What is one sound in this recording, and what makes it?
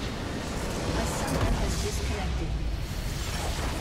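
A large structure explodes with a deep boom.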